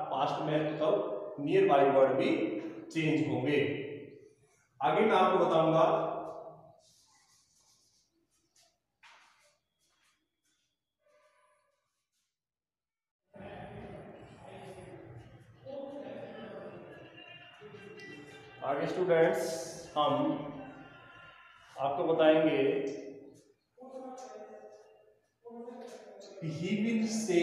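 A man speaks clearly and steadily, close by.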